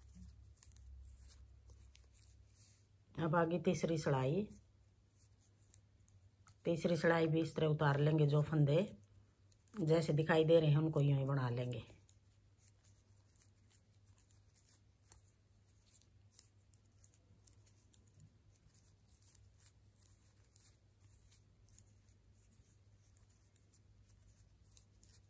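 Knitting needles tick and click softly against each other.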